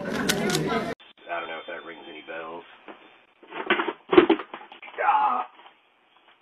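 A man talks on a phone outdoors.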